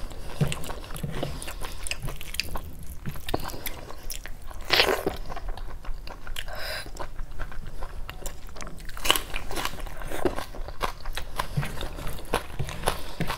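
A woman chews food wetly and loudly, close to a microphone.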